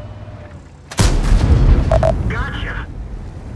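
A tank cannon fires with a loud boom that rings out.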